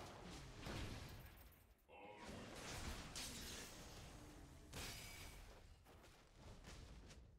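Fighting sound effects of a video game clash and whoosh.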